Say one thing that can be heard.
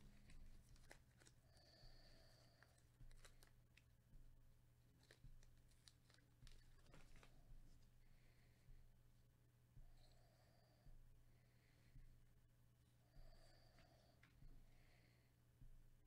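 Trading cards slide and rub against each other as they are shuffled.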